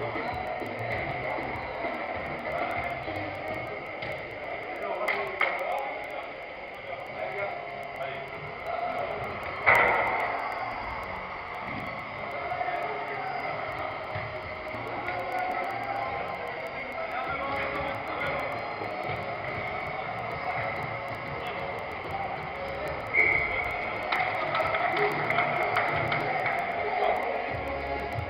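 Players shout to each other across a large echoing hall.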